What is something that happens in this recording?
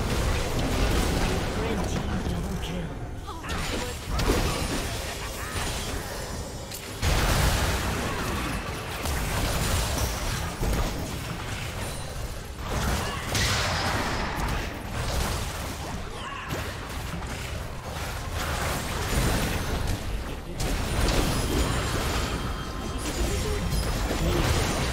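Game spell effects and weapon clashes crackle and boom throughout.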